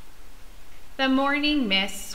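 A woman speaks close by, in a gentle sing-song voice.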